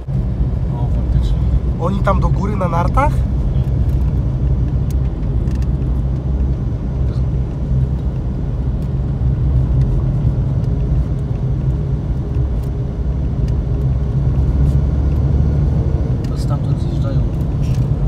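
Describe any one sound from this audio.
Tyres rumble over packed snow.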